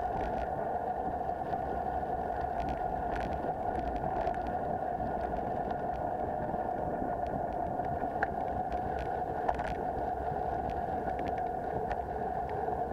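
Wind rushes steadily past, outdoors.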